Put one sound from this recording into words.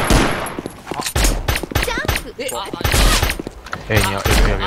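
Pistol shots crack sharply.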